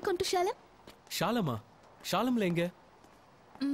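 A young man talks on a phone, calmly.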